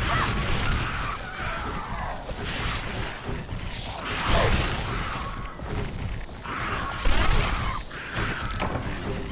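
Reptilian creatures screech and shriek.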